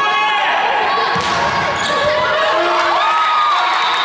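A volleyball is hit with a sharp slap.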